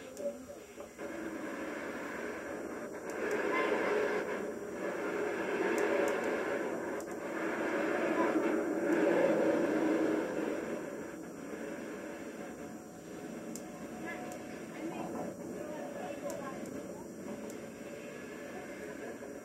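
A murmur of voices carries from a group some distance away.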